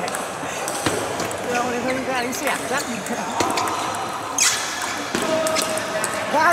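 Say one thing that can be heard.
Table tennis balls click sharply against paddles and tables in an echoing hall.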